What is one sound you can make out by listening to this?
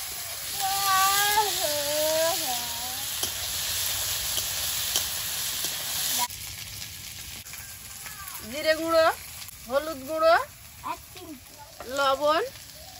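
A metal spatula scrapes against a wok.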